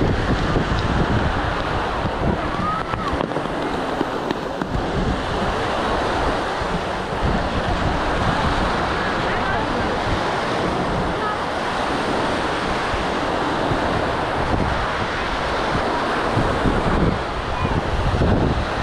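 Small waves wash and break steadily on the shore.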